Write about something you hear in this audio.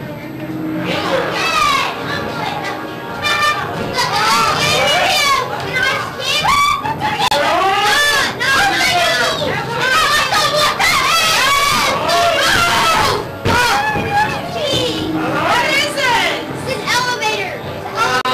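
A young girl shouts and squeals excitedly close by.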